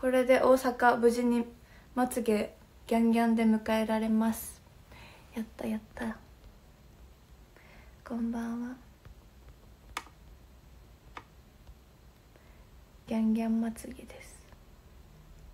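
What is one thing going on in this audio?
A young woman talks with animation, close to the microphone, in short bursts.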